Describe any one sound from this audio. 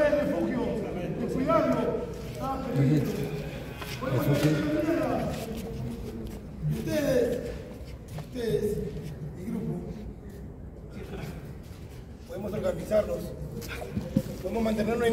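Several men and women talk and shout excitedly close by, in a large echoing hall.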